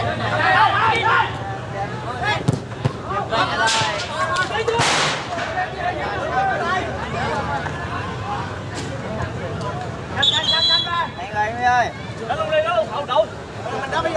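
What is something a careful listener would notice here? A crowd of spectators chatters and calls out nearby outdoors.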